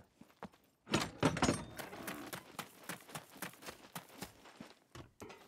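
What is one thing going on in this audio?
Footsteps crunch quickly on a gravel path.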